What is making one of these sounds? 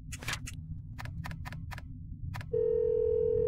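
Keypad buttons beep as a number is entered.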